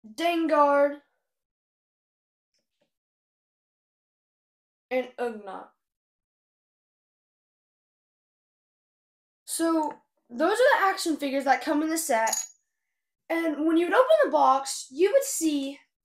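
A young girl talks with animation, close by.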